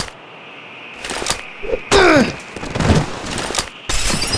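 A wooden bat thuds hard against a body.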